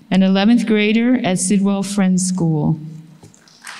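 An older woman reads aloud through a microphone.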